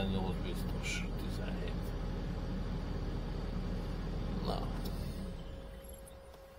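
A diesel engine rumbles steadily, then quiets down.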